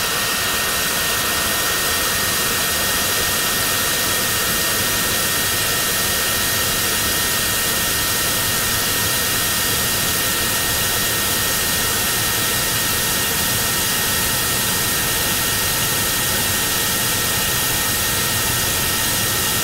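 A small jet engine roars with a steady high whine.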